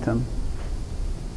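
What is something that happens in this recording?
An elderly woman speaks briefly and calmly.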